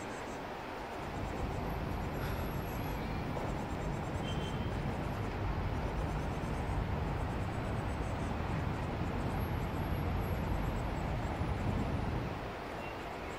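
An airplane rumbles overhead at a distance.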